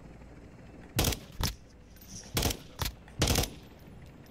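A rifle fires loud, sharp shots in short bursts.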